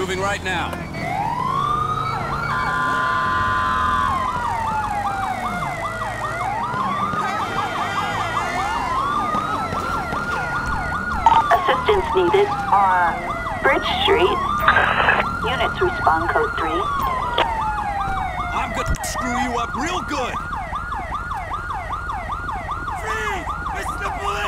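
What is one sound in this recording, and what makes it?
A police siren wails, rising and falling over and over.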